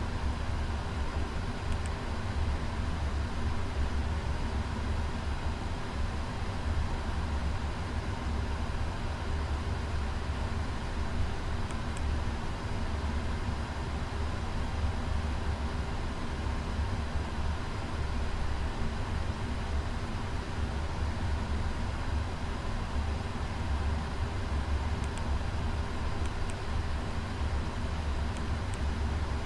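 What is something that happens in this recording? A steady low engine drone hums inside an airliner cockpit.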